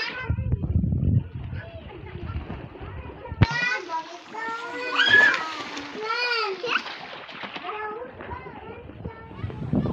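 Water splashes as children kick and paddle.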